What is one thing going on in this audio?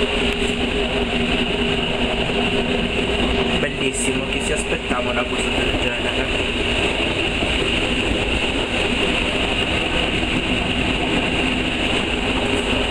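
A train rumbles and hums steadily as it rolls along.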